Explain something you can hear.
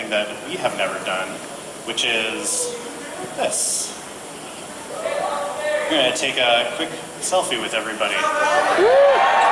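A young woman speaks with animation through a microphone in a large echoing hall.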